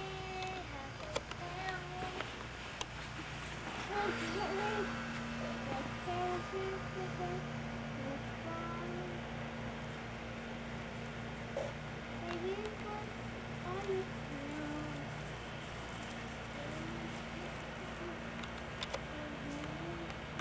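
A toddler babbles softly nearby outdoors.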